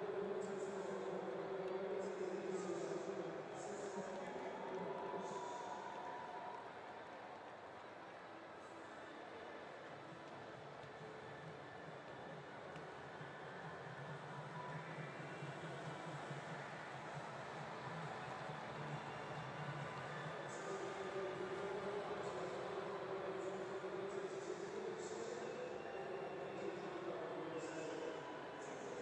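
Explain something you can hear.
A large crowd murmurs and cheers in a big open stadium.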